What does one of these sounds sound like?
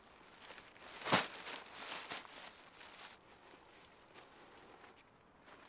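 A plastic sheet flaps and rustles in the wind.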